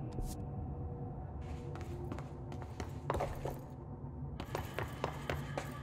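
Footsteps run quickly over loose ground.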